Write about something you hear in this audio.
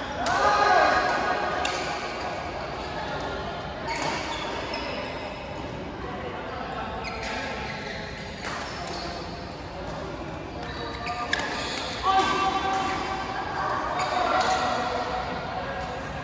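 Players call out to each other across a large echoing hall.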